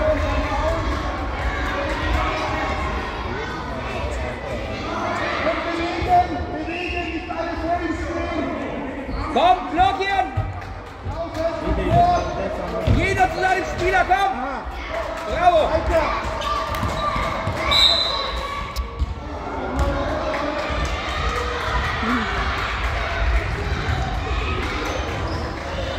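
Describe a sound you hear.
Children's voices chatter and call out throughout a large echoing hall.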